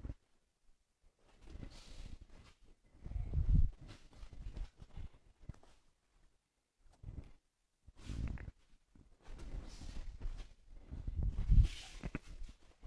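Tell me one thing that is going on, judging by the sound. Feet shuffle and thump on a padded mat.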